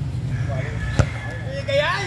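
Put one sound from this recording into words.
A ball thuds against a bare foot.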